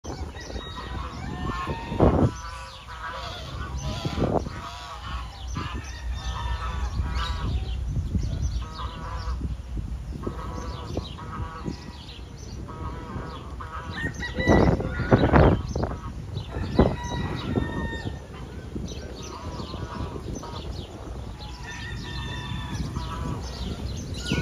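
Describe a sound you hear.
Geese honk and cackle loudly close by.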